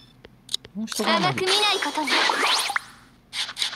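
A sword slashes with a swishing burst.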